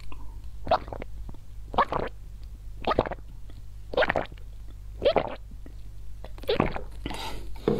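A woman gulps a drink loudly and close to a microphone.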